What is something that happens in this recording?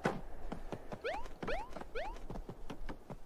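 A cartoon jump sound rises in pitch three times in quick succession.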